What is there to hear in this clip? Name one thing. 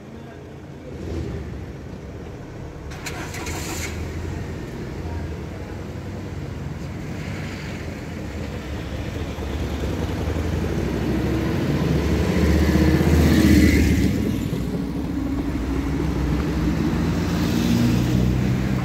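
Cars drive over a level crossing.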